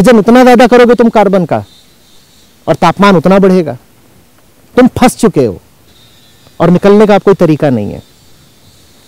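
A man speaks loudly and with animation close by, in short bursts.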